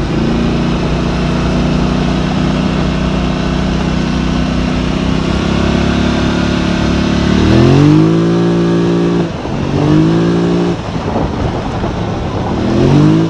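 Tyres rumble over a bumpy dirt track.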